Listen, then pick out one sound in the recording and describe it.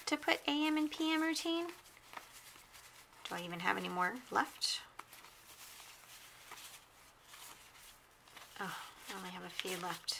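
Paper sheets rustle softly as they are leafed through by hand.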